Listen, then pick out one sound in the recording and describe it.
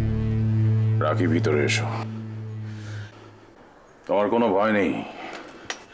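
A man speaks emphatically nearby.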